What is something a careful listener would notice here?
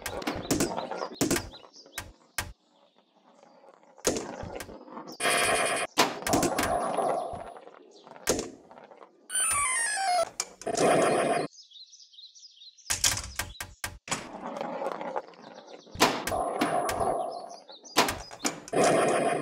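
A pinball ball knocks against bumpers and flippers with sharp clacks.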